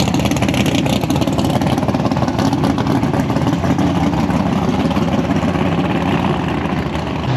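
A loud car engine idles with a deep, choppy rumble and slowly fades as the car pulls away.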